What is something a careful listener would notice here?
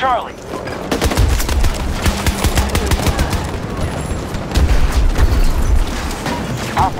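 Explosions boom and debris clatters.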